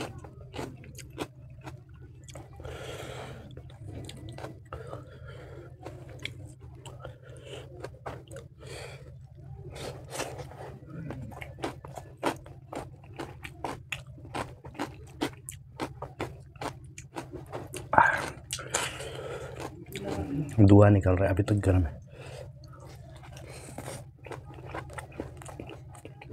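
A man's fingers squish and mix rice close by.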